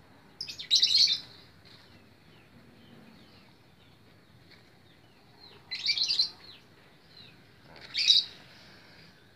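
A small knife scrapes and slices a green plant stem.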